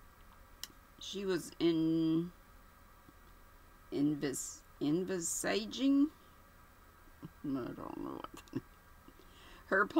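A woman speaks close to a microphone in short, animated bursts.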